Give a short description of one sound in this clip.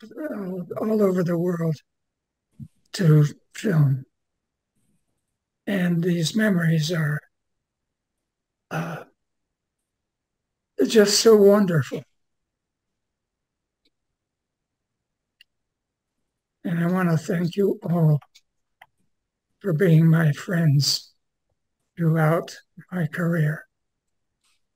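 An elderly man speaks calmly in short phrases with pauses, close to a microphone.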